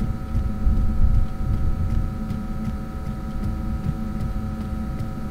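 A fluorescent light hums steadily.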